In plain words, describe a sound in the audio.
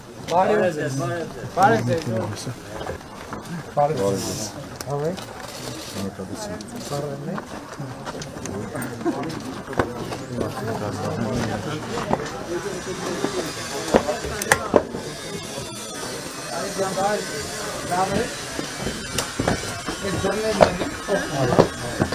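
Footsteps shuffle on the ground as a group walks.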